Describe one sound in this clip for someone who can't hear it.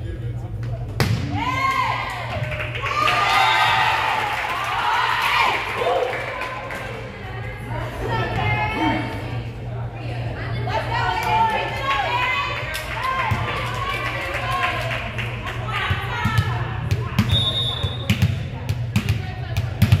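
Young women players call out and cheer on the court.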